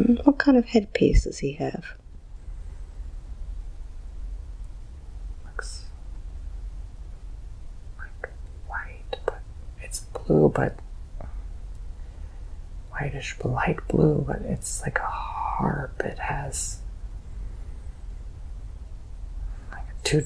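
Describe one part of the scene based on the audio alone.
A young man moans and sighs close by.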